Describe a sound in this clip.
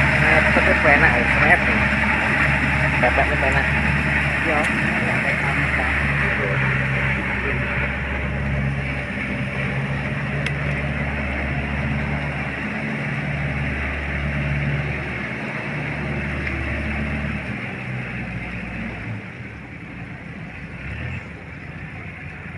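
A tractor engine rumbles steadily and slowly fades as it moves away.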